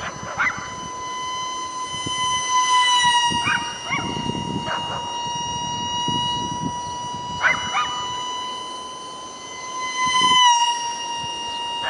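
A small model plane's motor whines steadily overhead.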